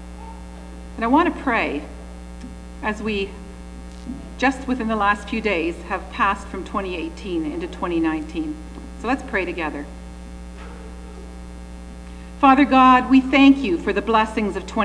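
A woman speaks calmly into a microphone, heard through loudspeakers in an echoing hall.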